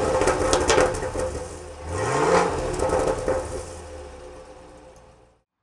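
A car engine idles with a deep exhaust rumble, then revs up briefly and settles back.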